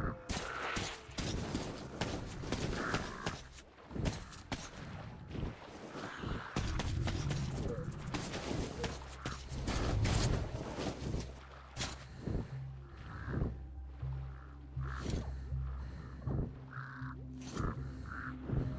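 Footsteps crunch on gravel and rubble.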